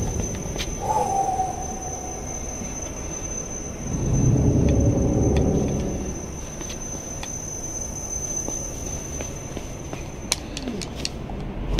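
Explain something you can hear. Footsteps patter on a hard floor.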